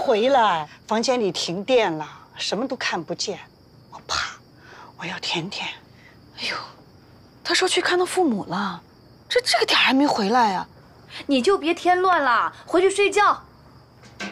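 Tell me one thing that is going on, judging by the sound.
An elderly woman speaks firmly.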